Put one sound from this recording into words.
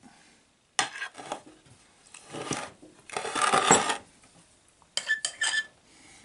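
A spatula scrapes and spreads thick frosting on a cake.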